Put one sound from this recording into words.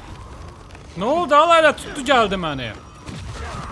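A man grunts and groans loudly with strain.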